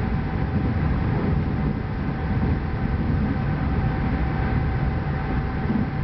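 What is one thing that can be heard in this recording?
A train's wheels clatter over the track.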